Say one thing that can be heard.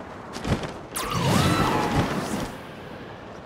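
A gust of rising air whooshes loudly upward.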